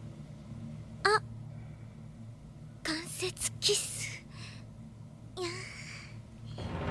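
A young woman's voice speaks softly and bashfully, with short pauses.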